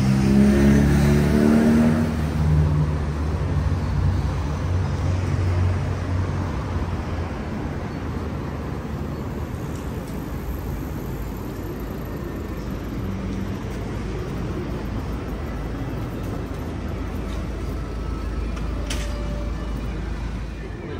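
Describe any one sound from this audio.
Traffic hums steadily on a nearby street.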